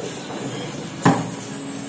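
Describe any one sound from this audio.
A foosball ball knocks sharply against a player figure.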